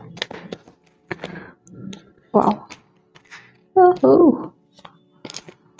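Playing cards are shuffled by hand, with soft riffling and tapping.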